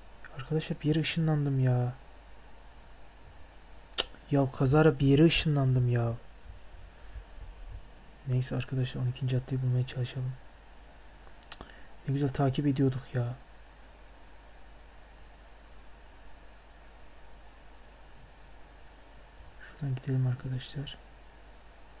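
A young man talks into a headset microphone in short bursts, close and casual.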